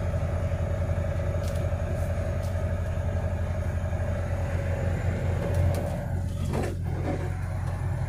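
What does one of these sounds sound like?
Cars pass by on the road going the other way.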